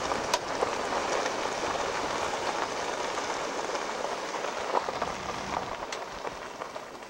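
A vehicle rolls slowly along a dirt road, with tyres crunching.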